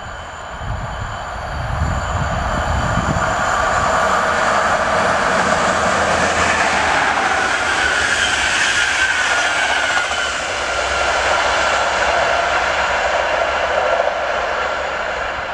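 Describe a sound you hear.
A passenger train approaches and roars past at speed, then fades into the distance.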